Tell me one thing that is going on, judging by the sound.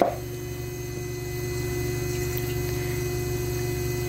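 Milk pours into a metal pot.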